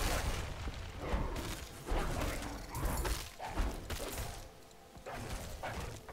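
Blows strike and clash in a short fight.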